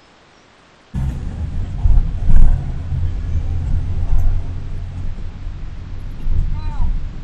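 A car engine hums and rumbles steadily.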